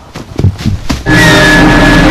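A loud harsh jump-scare blast of noise bursts out.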